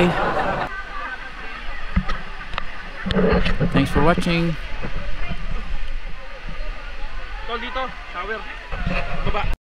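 Water rushes and splashes over rocks close by.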